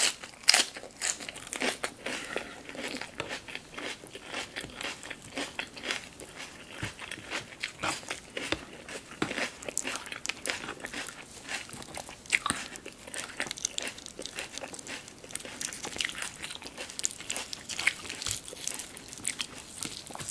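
Crispy chicken skin crackles and tears between fingers.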